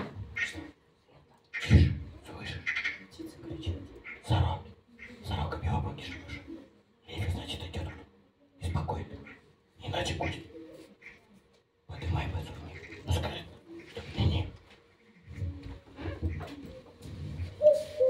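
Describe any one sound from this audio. A man speaks with animation in a room with a slight echo.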